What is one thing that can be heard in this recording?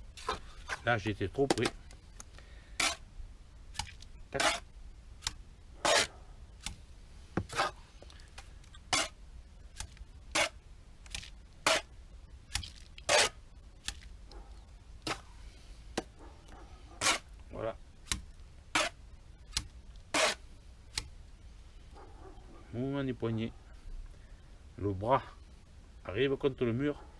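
A trowel scrapes and slaps wet mortar onto a wall, again and again.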